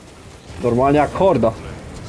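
A flamethrower roars in a burst of fire.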